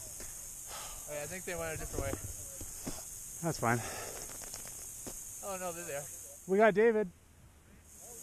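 A young man talks casually nearby.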